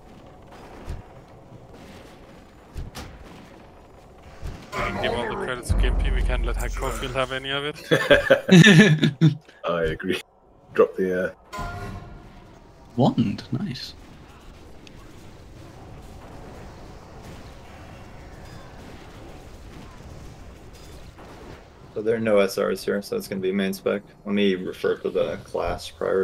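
Spells and weapon blows clash in a game battle.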